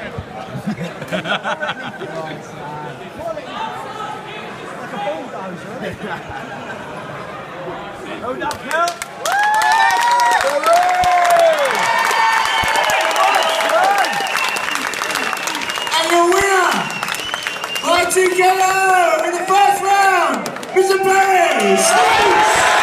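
A crowd chatters and murmurs.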